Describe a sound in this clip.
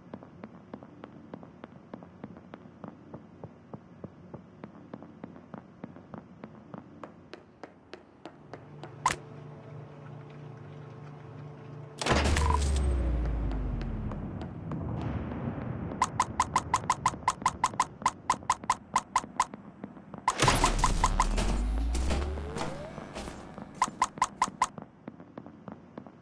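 Light footsteps tap quickly and steadily.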